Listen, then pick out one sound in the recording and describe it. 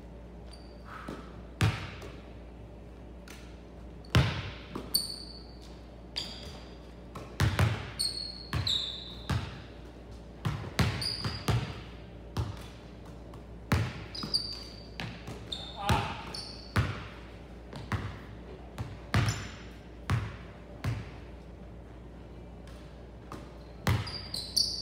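Basketballs bounce and thud on a wooden floor in a large echoing gym.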